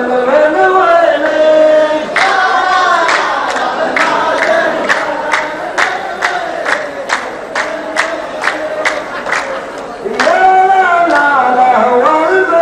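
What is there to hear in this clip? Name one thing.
A man chants a poem loudly through a microphone.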